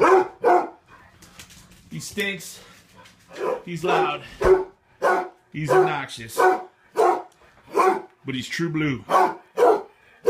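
A dog barks repeatedly, close by, in sharp bursts.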